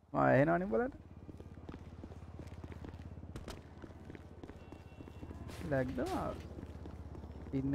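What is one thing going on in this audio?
Footsteps patter quickly on pavement.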